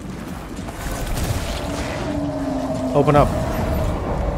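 A magical blast crackles and booms.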